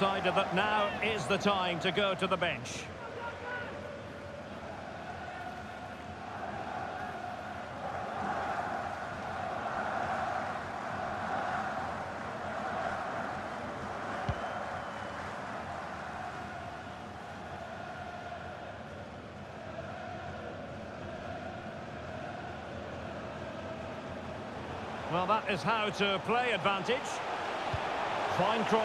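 A large stadium crowd roars.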